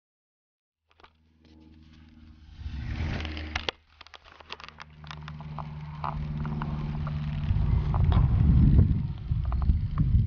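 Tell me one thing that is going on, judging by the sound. A model plane's engine drones overhead, rising and falling as the plane flies by.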